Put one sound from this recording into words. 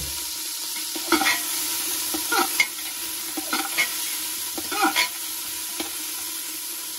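A metal spoon scrapes and clinks against the side of a metal pot.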